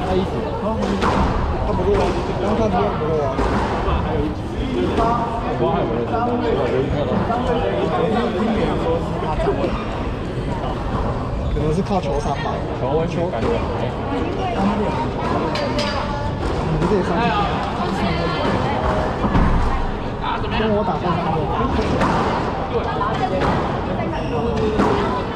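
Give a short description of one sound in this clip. A racket strikes a squash ball with sharp pops.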